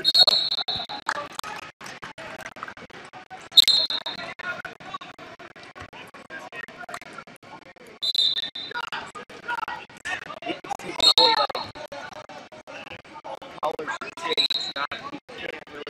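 A referee blows short sharp whistle blasts in a large echoing hall.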